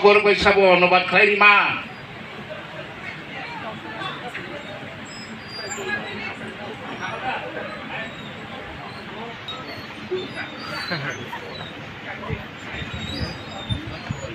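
An audience murmurs and chatters nearby.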